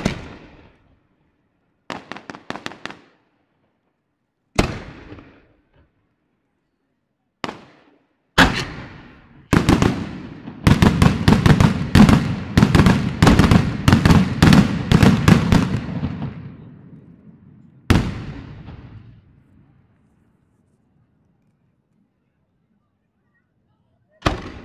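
Fireworks burst with loud booming bangs outdoors, echoing off into the distance.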